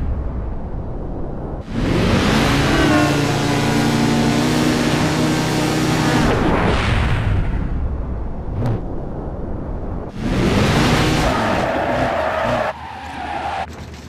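A motorcycle engine revs hard and roars at speed.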